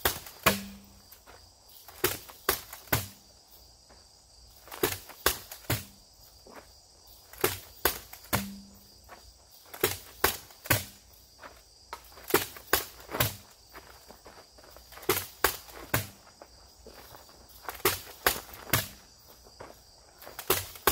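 A sledgehammer thuds heavily into rubber tyres, again and again in quick pairs.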